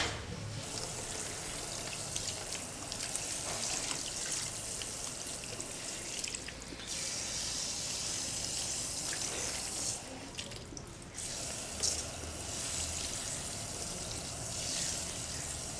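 Fingers rub and scrub wet hair.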